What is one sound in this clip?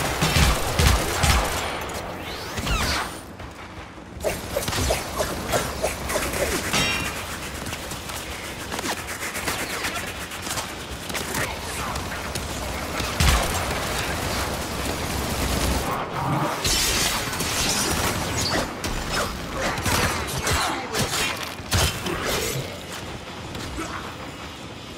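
Gunfire and energy blasts crack and boom in quick bursts.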